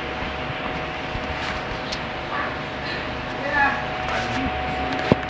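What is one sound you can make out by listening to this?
Two dogs growl and snarl as they play-fight.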